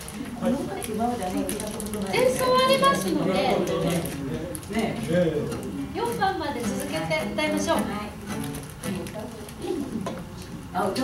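An acoustic guitar strums along.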